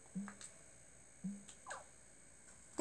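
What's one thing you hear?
Short electronic menu blips sound from a television speaker.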